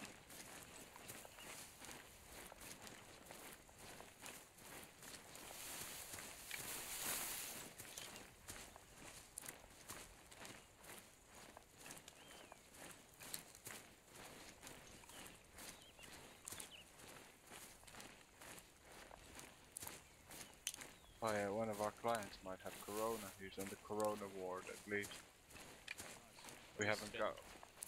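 Footsteps crunch through brush and undergrowth.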